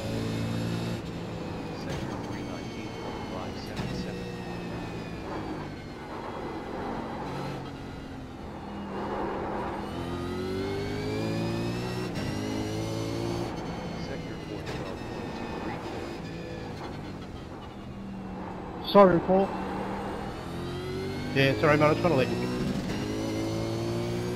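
A racing car engine roars, revving up and down through gear changes.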